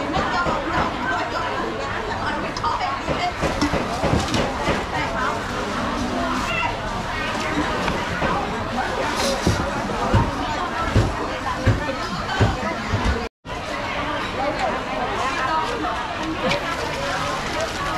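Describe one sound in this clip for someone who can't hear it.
Metal ladles clink against pots.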